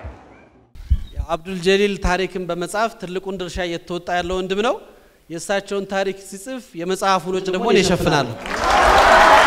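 A man sings through loudspeakers in an echoing hall.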